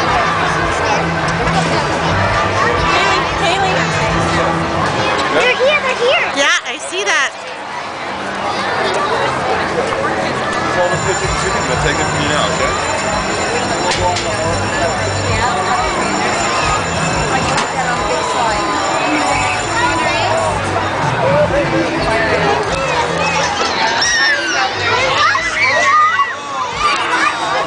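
A crowd chatters loudly all around outdoors.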